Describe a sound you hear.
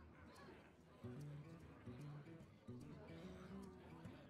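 A magical chime sounds as a card is played.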